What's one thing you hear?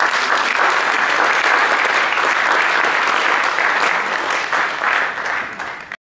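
A crowd applauds steadily in a large room, then fades.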